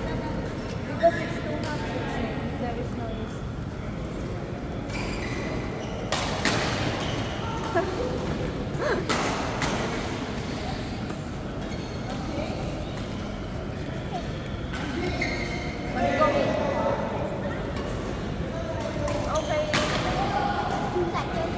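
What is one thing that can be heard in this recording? Women and men call out and talk across the hall.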